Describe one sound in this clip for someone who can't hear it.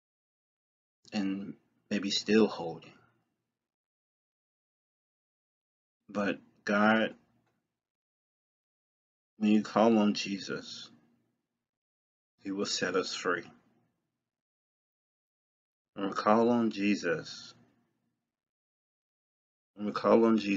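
A young man speaks calmly close to a microphone, in short phrases with pauses.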